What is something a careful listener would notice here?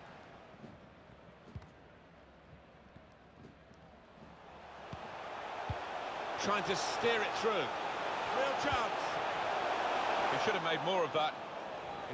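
A stadium crowd roars, swelling louder as play nears the goal.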